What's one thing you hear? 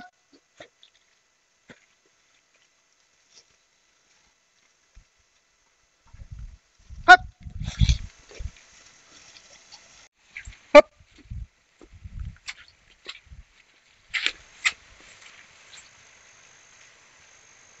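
Cattle rustle through tall grass as they walk downhill.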